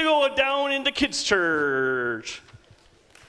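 A man speaks loudly and with animation through a microphone in a large hall.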